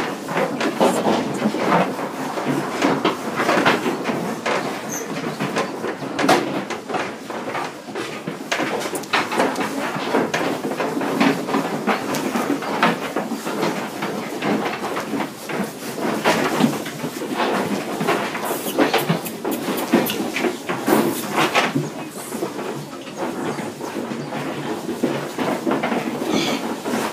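Pigs grunt and squeal close by.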